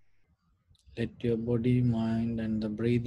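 A man chants in a deep, steady voice close to a microphone.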